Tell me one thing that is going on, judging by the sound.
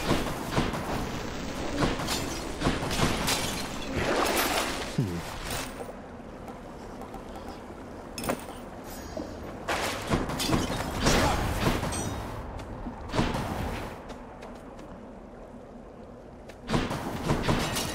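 Game sound effects crash and whoosh in quick bursts during a fight.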